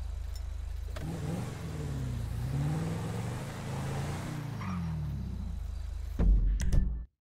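A car engine revs and hums as a car drives off.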